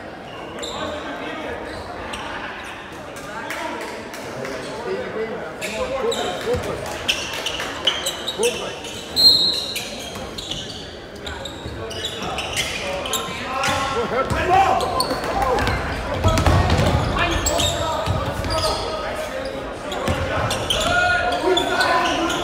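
Spectators chatter in the stands of an echoing gym.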